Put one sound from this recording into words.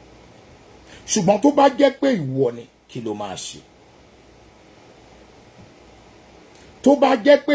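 A middle-aged man speaks calmly and close by, in short bursts.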